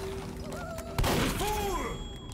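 A glass jar shatters with a splash.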